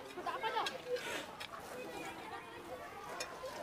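Shovels scrape and dig into loose soil.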